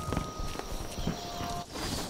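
Leaves rustle as someone pushes through bushes.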